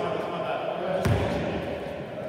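A basketball bounces on a hard floor in an echoing hall.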